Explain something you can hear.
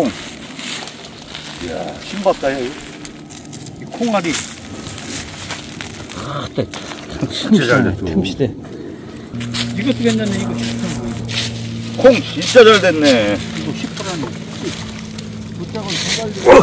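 Dry plant stalks rustle as they are pulled from the soil.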